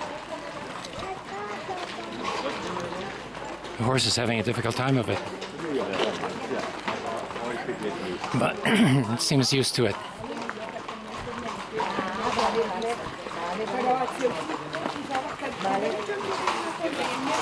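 Adult men talk casually nearby.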